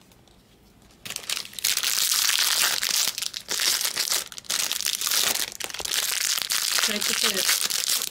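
Foil card packs crinkle and rustle in a pair of hands.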